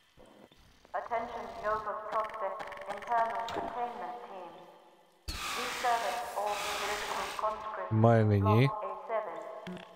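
A large creature screeches and chitters.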